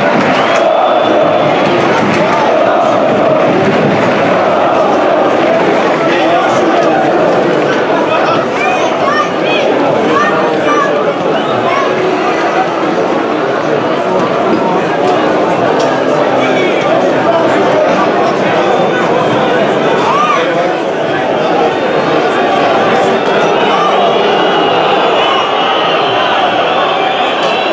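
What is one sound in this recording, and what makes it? A large stadium crowd cheers and chants loudly, echoing around the stands.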